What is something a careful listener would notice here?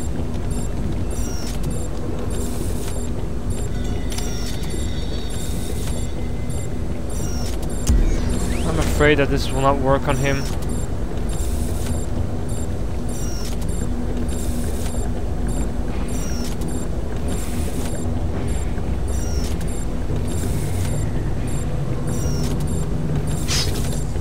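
Footsteps tread softly on a metal grating.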